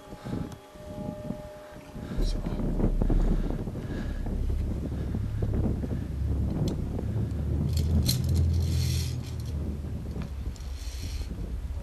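Metal clips clink against a steel cable.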